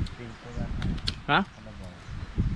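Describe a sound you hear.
A young man bites into a crisp fruit with a crunch.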